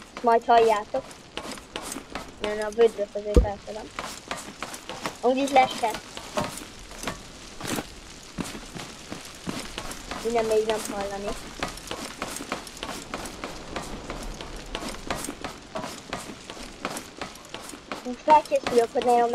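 Footsteps tap quickly on hard steps and ramps.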